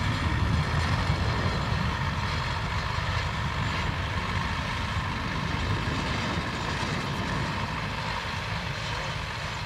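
A harrow scrapes and rattles through dry soil.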